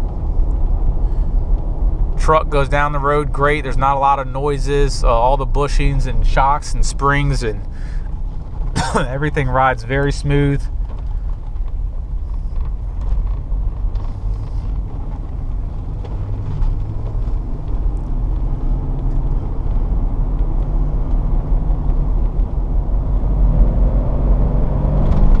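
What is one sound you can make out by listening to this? A vehicle engine hums steadily from inside the cab.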